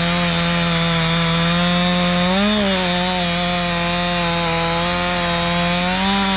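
A chainsaw roars loudly up close.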